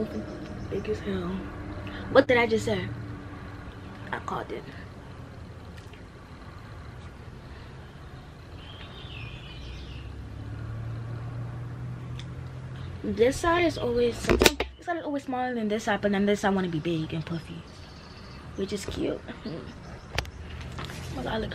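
A young girl talks casually close by.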